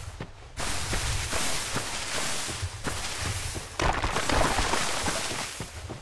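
Footsteps crunch through tall grass.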